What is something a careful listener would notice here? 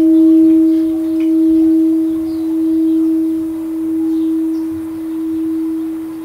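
A large bell hums with a steady, slowly fading ring that swells and dips.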